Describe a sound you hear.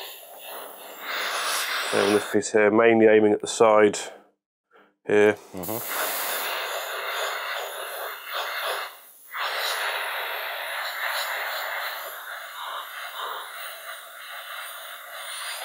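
An airbrush sprays with a steady, airy hiss.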